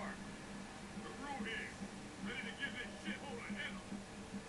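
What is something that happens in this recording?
A deep-voiced man speaks over a radio.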